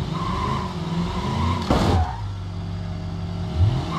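A car crashes into another car with a loud bang.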